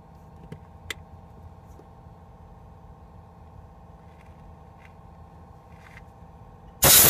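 Plastic parts and wires click and rattle softly as hands pull at them.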